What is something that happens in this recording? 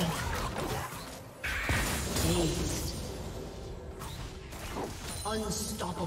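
Game spell effects crackle and clash in a fight.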